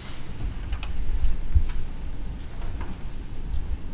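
Paper rustles as a man handles documents.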